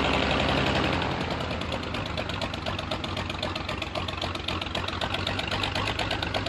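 A propeller plane's engine drops to a rapid, chugging idle.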